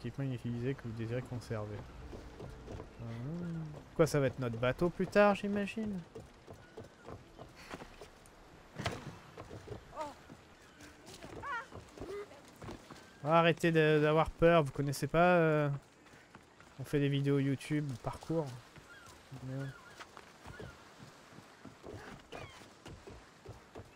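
Footsteps run across wooden boards.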